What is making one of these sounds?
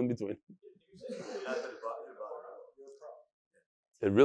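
A middle-aged man chuckles softly.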